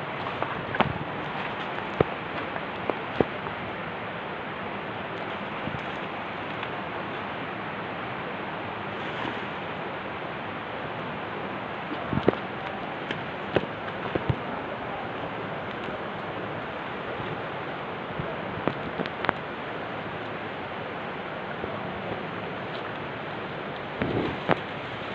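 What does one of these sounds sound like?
Footsteps crunch on soft forest ground.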